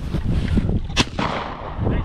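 A shotgun fires a single loud shot outdoors.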